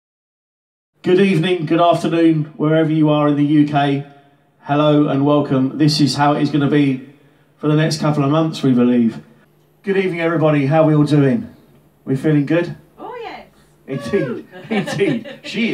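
A man talks loudly and with animation into a microphone.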